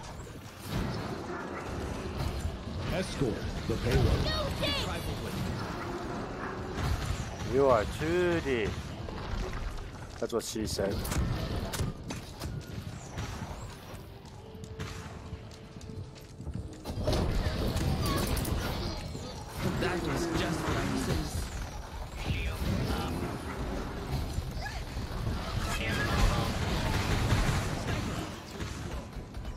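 Game weapons fire with crackling magical bursts and zaps.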